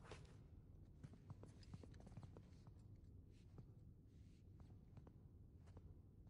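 Stone tiles click and scrape as they are turned by hand.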